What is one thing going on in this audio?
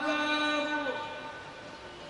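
A man chants in a long, held voice through a microphone, echoing in a large hall.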